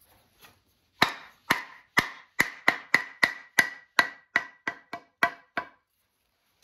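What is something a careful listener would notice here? A wooden mallet taps repeatedly on the back of an axe head.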